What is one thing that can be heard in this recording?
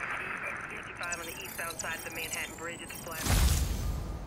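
A chime of short electronic tones rings out.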